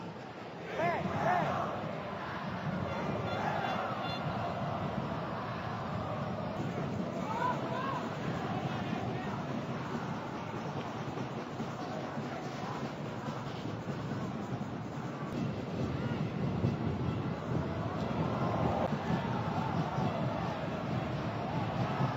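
A large crowd roars in a stadium.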